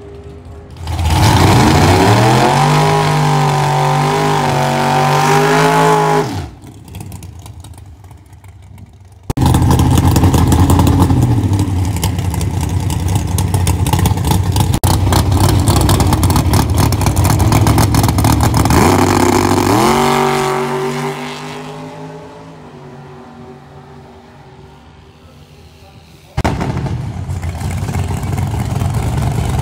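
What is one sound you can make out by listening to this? A drag racing engine roars loudly and revs up and down.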